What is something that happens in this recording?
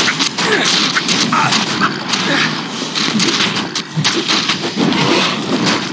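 Fireballs burst with whooshing blasts.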